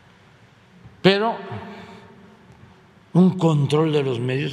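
An elderly man speaks calmly and deliberately into a microphone.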